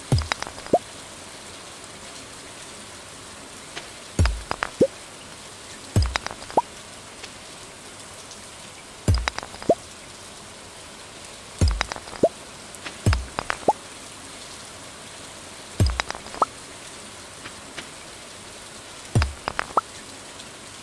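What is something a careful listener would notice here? A pickaxe strikes stones with sharp knocks, each followed by a short rising pop.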